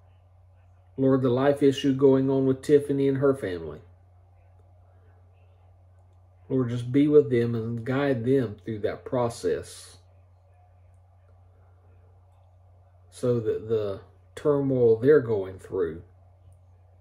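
A middle-aged man speaks calmly and slowly, close to the microphone, in short bursts with pauses.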